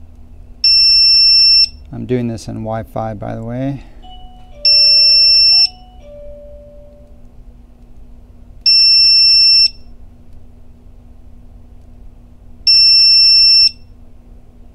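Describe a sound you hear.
An electronic device gives a long, steady beep every few seconds.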